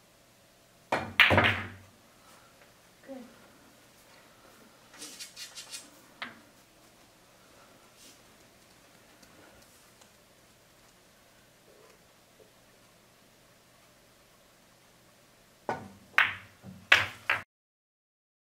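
Pool balls clack sharply together.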